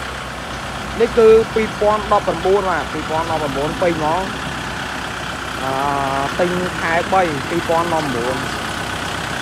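A man speaks nearby with animation.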